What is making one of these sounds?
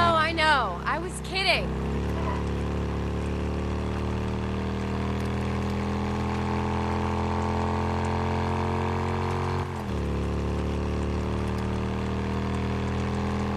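A motorcycle engine rumbles steadily, shifting once mid-ride.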